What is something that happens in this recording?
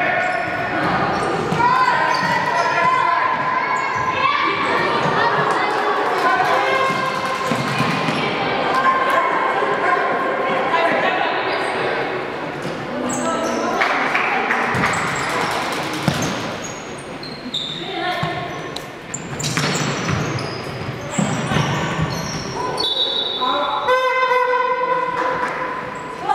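Young women shout to each other across an echoing indoor hall.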